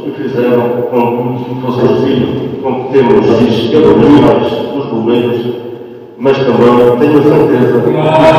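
A man speaks steadily into a microphone, heard through loudspeakers in a large echoing hall.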